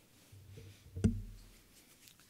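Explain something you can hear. A microphone thumps once as it is knocked.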